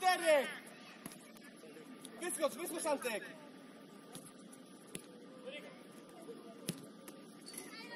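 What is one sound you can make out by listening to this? A football is kicked with a dull thud.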